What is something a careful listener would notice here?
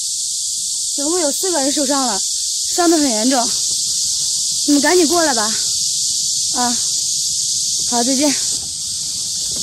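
A young woman speaks anxiously into a phone, close by.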